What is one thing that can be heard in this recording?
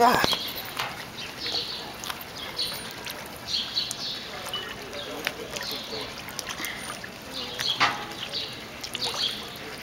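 Fish splash and slosh at the water's surface.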